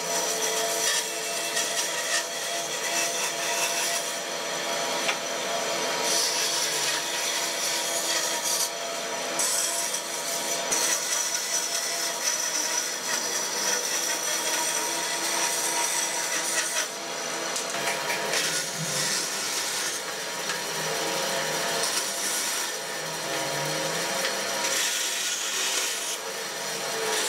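A band saw whirs steadily as it cuts through wood.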